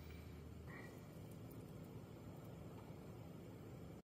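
A fork scrapes and flakes soft fish.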